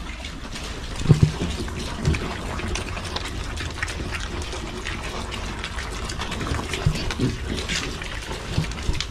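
Piglets crunch and snuffle at dry feed.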